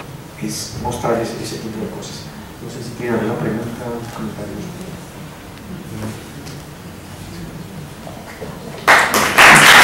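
A man talks casually up close.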